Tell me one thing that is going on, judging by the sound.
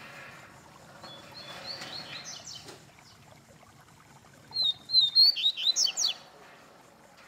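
A caged bird sings in short, loud bursts of chirps and trills.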